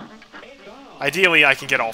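A heavy cartoon whack lands with a loud thump.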